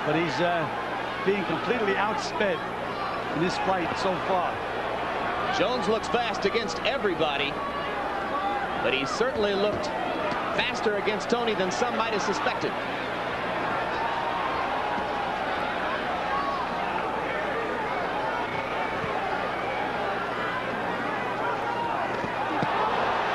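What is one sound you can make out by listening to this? A large crowd murmurs and cheers steadily in a big arena.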